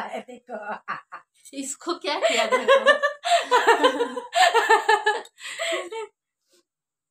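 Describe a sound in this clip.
Another young woman laughs close by.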